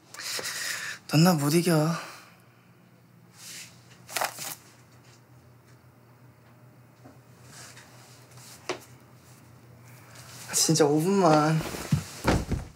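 A young woman speaks softly close by.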